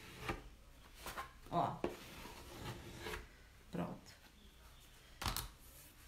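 A cloth rubs softly over a flat surface.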